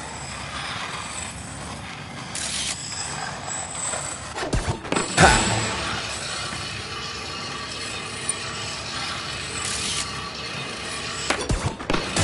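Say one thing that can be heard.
Skateboard wheels roll and grind along a pool's edge.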